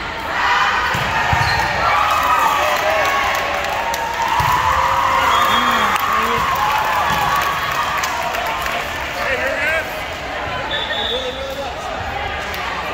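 A volleyball thumps off hands and arms.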